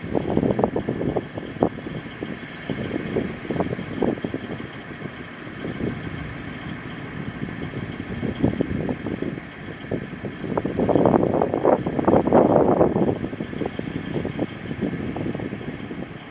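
A tracked vehicle's engine rumbles as it rolls slowly past.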